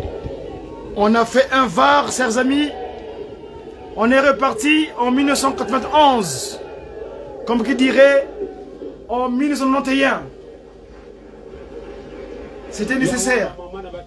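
A man speaks with animation, close to a phone's microphone.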